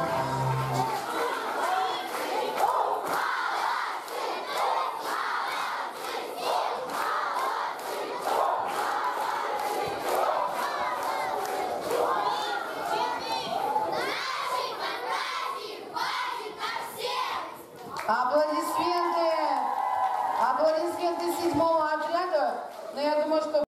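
A group of children sing together loudly in an echoing hall.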